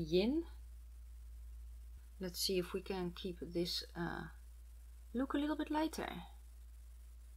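A woman speaks calmly and close to a microphone, in short phrases.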